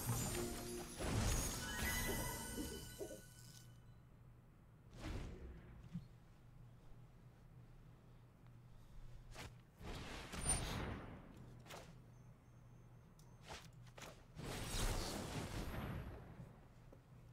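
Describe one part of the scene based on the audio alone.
Magical whooshes and chimes sound in bursts.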